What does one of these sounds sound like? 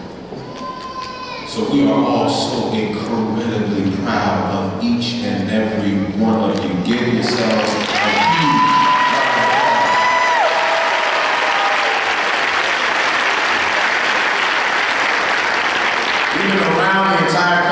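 A man preaches with passion through a microphone in a large echoing hall.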